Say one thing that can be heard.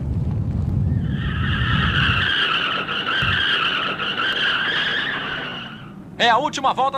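A race car engine whines at high speed.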